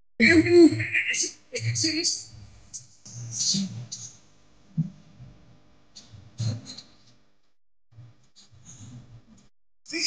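A young woman talks with animation close to a phone microphone.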